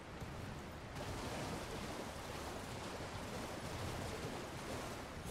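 Water splashes as a person wades through a stream.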